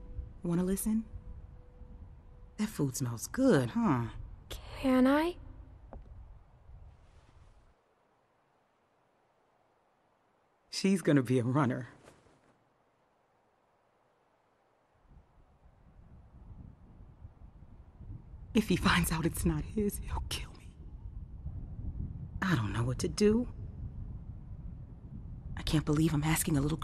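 A woman speaks softly and emotionally.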